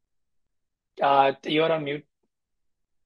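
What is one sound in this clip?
A young man speaks briefly over an online call.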